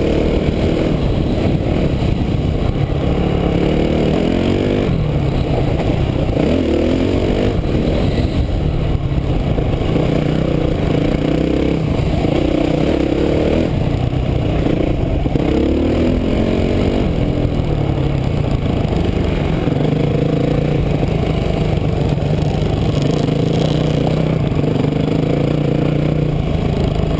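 A dirt bike engine buzzes and revs up and down throughout.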